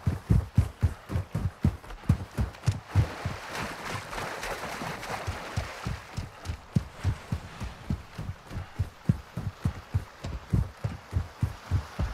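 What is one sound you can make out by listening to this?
Footsteps thud quickly and steadily on sand and earth.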